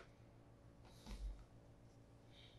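A leather shoe is lifted off a wooden table with a soft thump.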